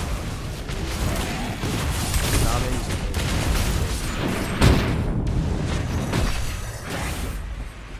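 Sharp hit sounds strike in quick bursts.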